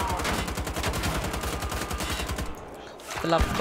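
Two automatic guns fire in rapid bursts.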